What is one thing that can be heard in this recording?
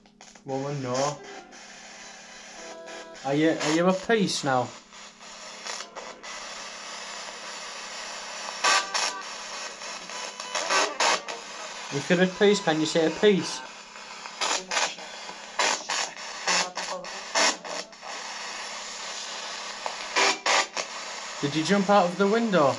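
A young man sings into a microphone close by.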